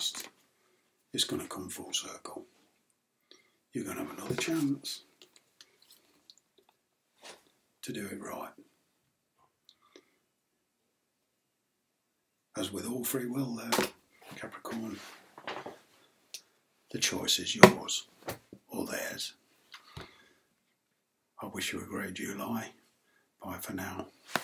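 A middle-aged man speaks calmly and close to the microphone, in bursts with pauses.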